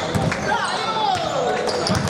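A basketball is dribbled on a hardwood floor.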